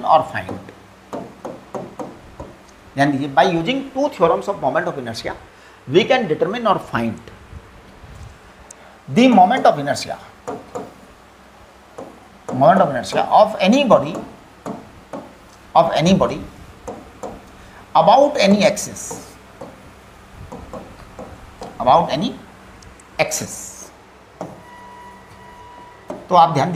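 An elderly man speaks calmly and slowly, as if explaining, close to a microphone.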